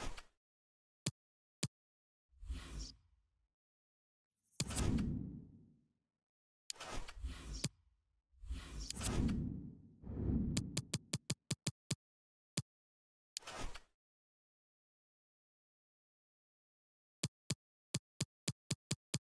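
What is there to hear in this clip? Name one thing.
Short electronic clicks tick, sometimes in quick runs.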